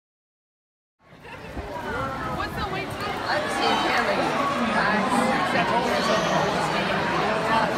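A large crowd of children and adults chatters noisily in an echoing hall.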